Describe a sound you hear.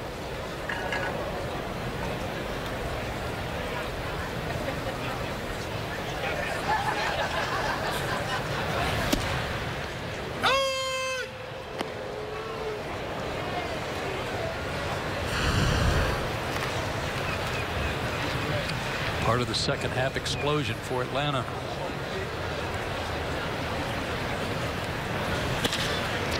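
A large crowd murmurs steadily outdoors.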